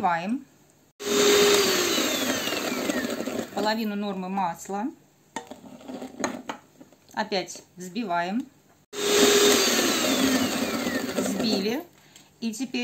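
An electric hand mixer whirs loudly in bursts.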